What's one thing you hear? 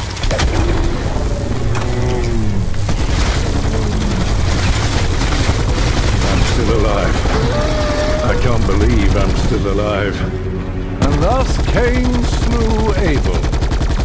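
A large beast roars and snarls.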